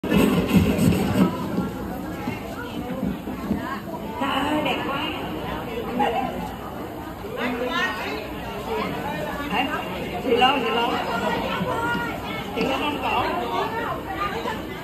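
An elderly woman sings into a microphone through loudspeakers in a large room.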